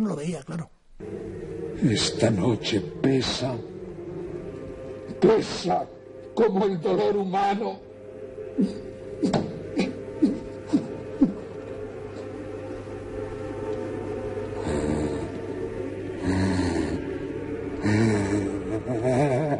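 A man speaks with strong emotion in an echoing space.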